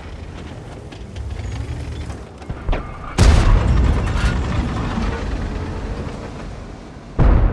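A tank engine rumbles low and steady as the tank rolls forward.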